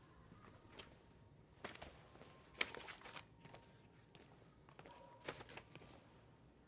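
Paper rolls rustle and knock as they are handled.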